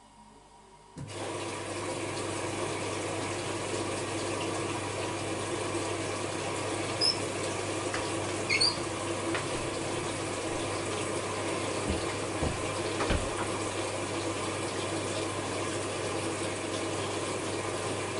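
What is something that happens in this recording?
A washing machine hums steadily as its drum turns.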